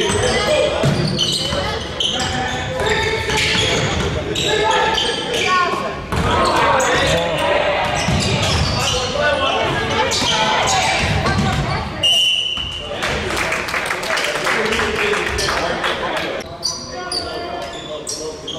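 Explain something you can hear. Young players shout to each other across an echoing gym.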